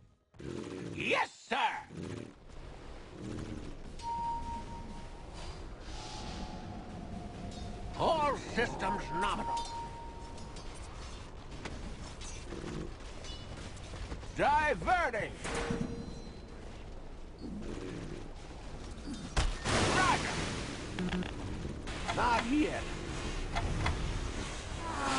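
A young man talks into a close microphone, casually.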